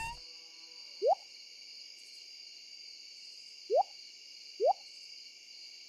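Short rising pops sound as items are picked up and put down in a game menu.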